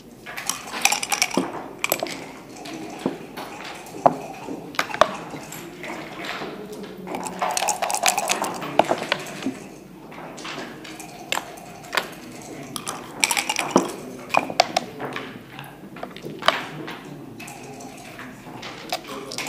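Plastic checkers click and clack as they are moved on a wooden board.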